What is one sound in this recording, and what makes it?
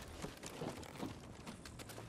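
Someone climbs a creaking wooden ladder.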